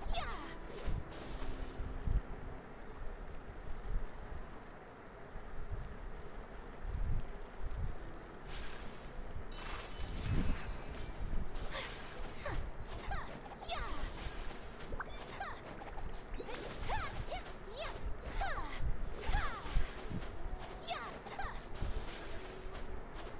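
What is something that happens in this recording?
Swords swing and slash through the air with sharp whooshes.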